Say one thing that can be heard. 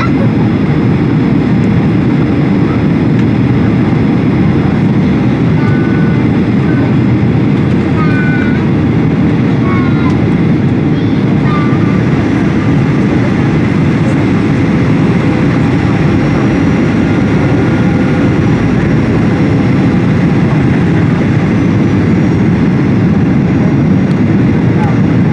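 A jet engine roars steadily close by, with a constant low rush of air.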